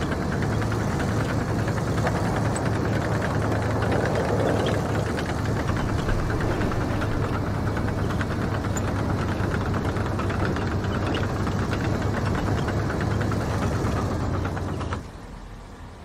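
A tank engine rumbles loudly as the tank drives.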